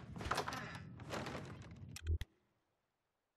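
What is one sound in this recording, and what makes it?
A wooden door creaks open.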